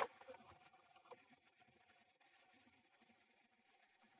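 A tissue rustles as it is pulled out.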